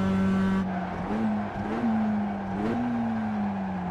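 A race car engine blips and revs up sharply as it shifts down through the gears.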